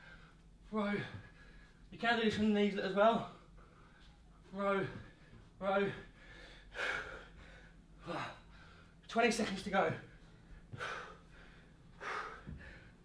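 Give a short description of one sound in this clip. A young man talks with animation, slightly out of breath, close by.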